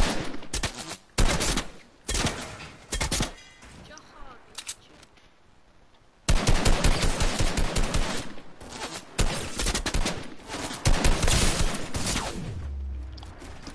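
Gunshots fire in quick, sharp bursts.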